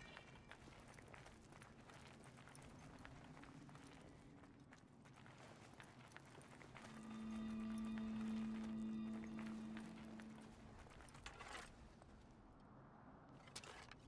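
Footsteps crunch quickly over loose gravel and rock.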